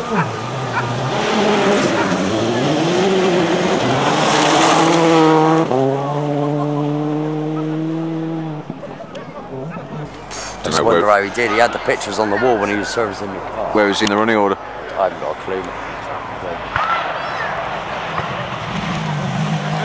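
A rally car engine roars and revs hard, rising and falling in pitch.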